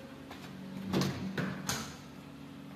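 A door handle clicks and a door swings open.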